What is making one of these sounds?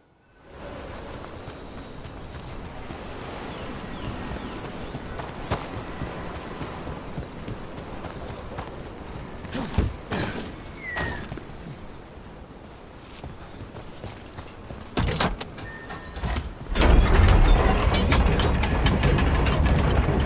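Footsteps scuff over stone paving.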